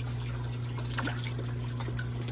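Fish splash and thrash at the water's surface.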